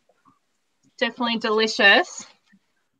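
A woman speaks briefly and with animation over an online call.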